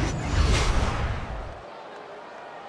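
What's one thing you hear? A swooshing transition sound rushes past.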